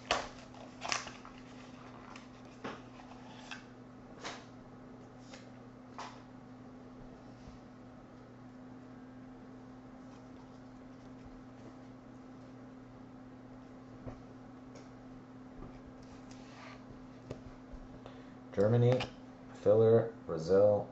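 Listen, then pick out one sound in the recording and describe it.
Trading cards slide and rustle against each other as they are flipped through.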